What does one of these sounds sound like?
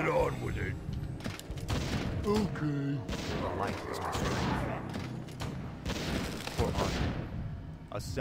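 Weapons clash in a game battle.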